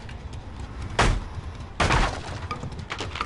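A wooden pallet crashes down with a loud clatter.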